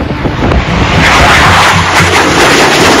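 A jet roars loudly as it passes low.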